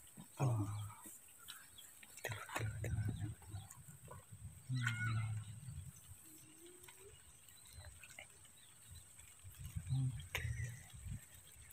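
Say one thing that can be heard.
Plant stalks rustle and squelch in wet mud as they are pulled.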